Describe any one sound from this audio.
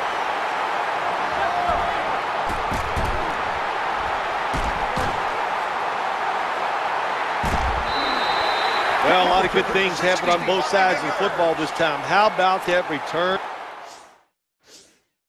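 A large stadium crowd roars steadily, then falls silent.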